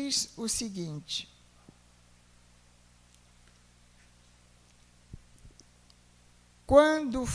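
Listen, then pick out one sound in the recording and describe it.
A woman speaks into a microphone, heard through a loudspeaker, pausing between phrases.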